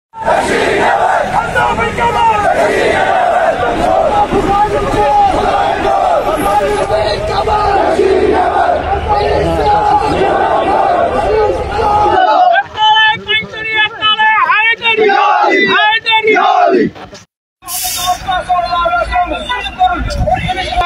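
A large crowd of men chants slogans loudly outdoors.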